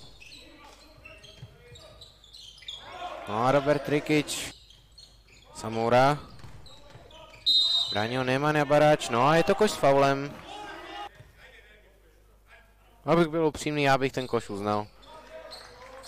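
Sneakers squeak on a hard court in a large hall.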